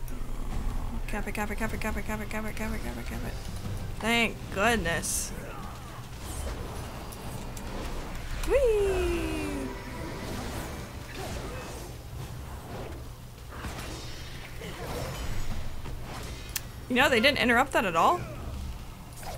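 A young woman talks into a close microphone.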